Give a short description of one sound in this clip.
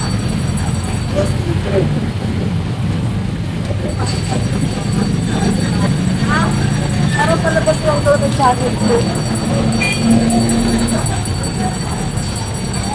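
Scooters and cars hum and rumble past.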